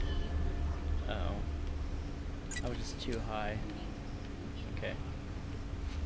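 A middle-aged man speaks briefly and quietly into a close microphone.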